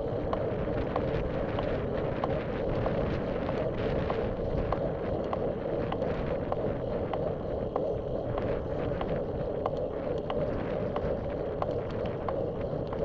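Tyres roll and hum steadily on smooth pavement.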